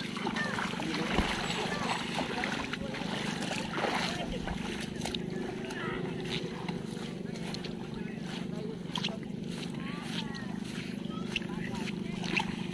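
Bare feet splash and crunch over wet weeds.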